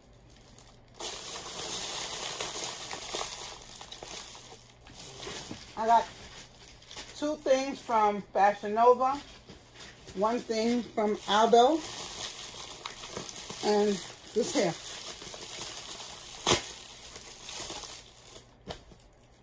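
A plastic bag crinkles and rustles in a woman's hands.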